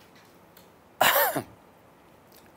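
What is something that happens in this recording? A man coughs.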